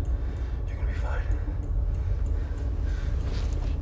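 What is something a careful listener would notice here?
A man speaks quietly and tensely.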